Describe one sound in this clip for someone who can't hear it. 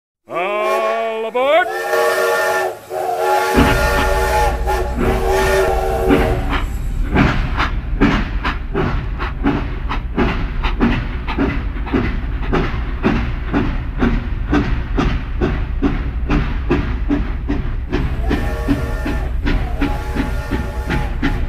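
A toy train clatters along plastic tracks.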